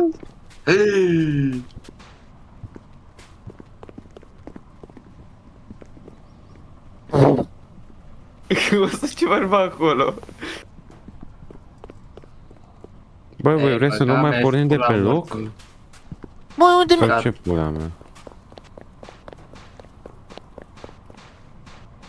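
Footsteps tap steadily on a hard floor.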